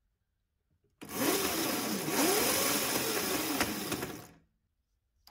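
A small electric motor whirs as a wheel spins, its pitch rising and falling.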